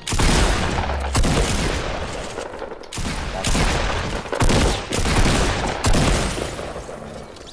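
Rapid gunfire rattles loudly in a video game.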